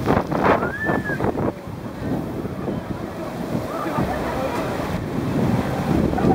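A log flume boat splashes down into a pool of water.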